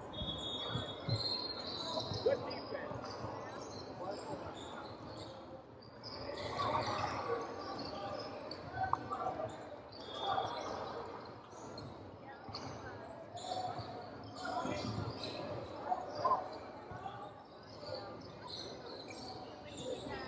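Young players call out and shout across the gym.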